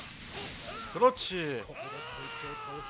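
An energy blast bursts with a loud roar.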